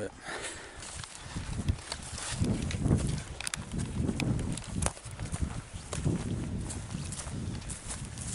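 Footsteps rustle through leaves and grass.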